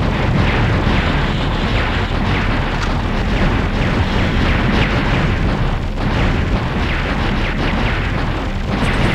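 Rapid gunfire rattles without a break.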